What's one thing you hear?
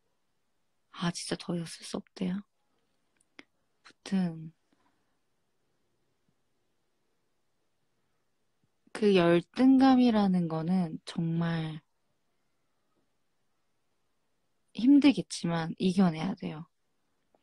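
A young woman speaks softly and close up, in short bursts with pauses.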